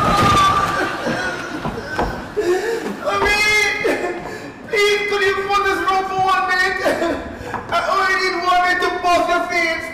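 A man sings in long, drawn-out notes in an echoing hall.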